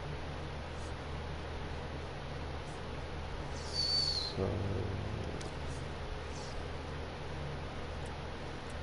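A young man speaks quietly into a microphone.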